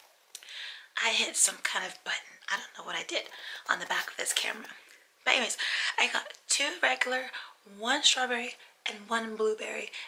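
A woman speaks calmly and close by, heard through a microphone.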